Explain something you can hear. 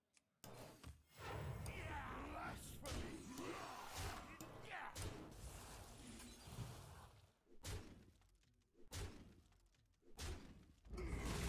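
Game effects chime and whoosh as cards attack.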